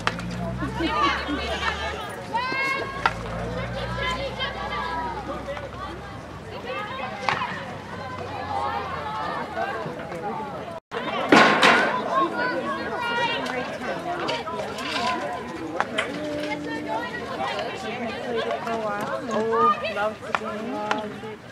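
Young women shout and call out across an open outdoor field.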